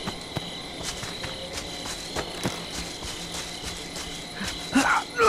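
Footsteps crunch over ground and dry leaves.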